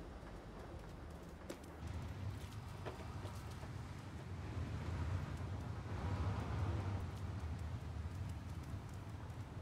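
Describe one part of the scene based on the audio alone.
A cat's paws patter softly on hard ground.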